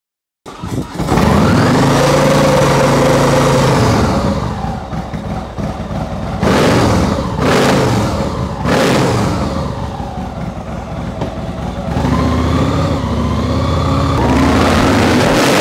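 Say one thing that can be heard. A motorcycle engine starts with a roar and idles with a deep, loud rumble.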